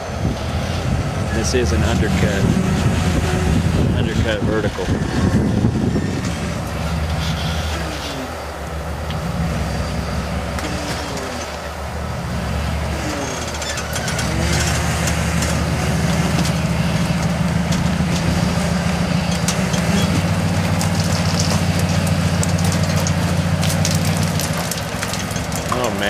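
An off-road buggy engine revs hard and rumbles as it climbs.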